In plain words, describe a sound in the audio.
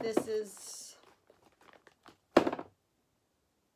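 Cellophane crinkles in a woman's hands.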